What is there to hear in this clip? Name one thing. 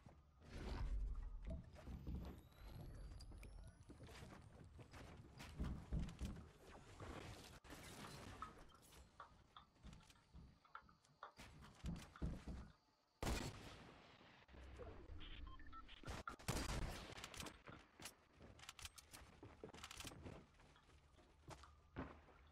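Wooden walls and ramps are built with quick knocking and clattering thuds.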